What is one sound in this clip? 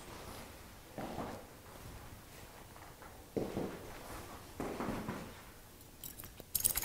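A man speaks quietly through a microphone.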